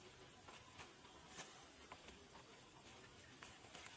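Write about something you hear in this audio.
Leaves and stems rustle as plants are picked by hand.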